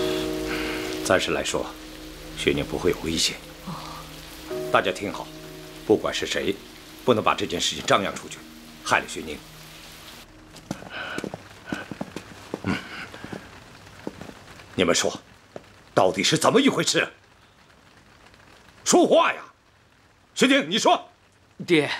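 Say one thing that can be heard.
A middle-aged man speaks sternly and loudly, close by.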